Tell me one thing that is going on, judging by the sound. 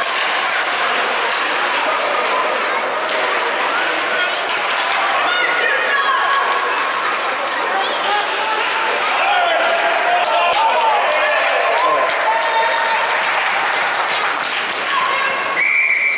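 Hockey sticks clack against a puck.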